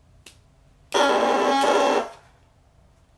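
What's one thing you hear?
A bassoon reed squawks loudly in a short burst.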